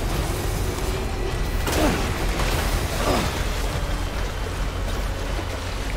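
Water splashes around the wheels of a vehicle crossing a river.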